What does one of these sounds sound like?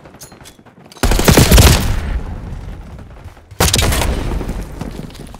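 Gunshots go off in loud, sharp bursts.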